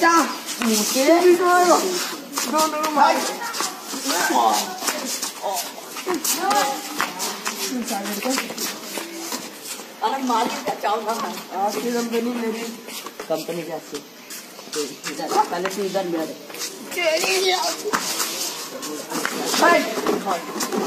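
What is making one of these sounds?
Young men scuffle and shove each other.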